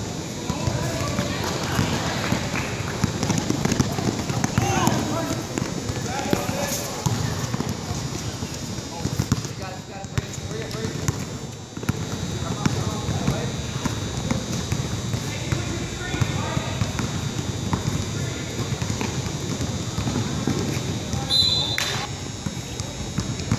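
Basketball players' sneakers squeak on a hard court in a large echoing gym.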